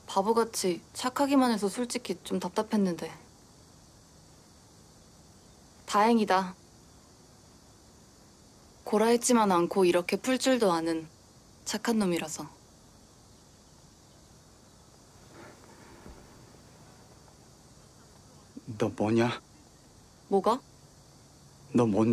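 A young man speaks earnestly up close.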